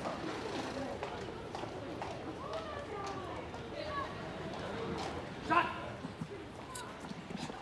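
Steady street noise hums outdoors.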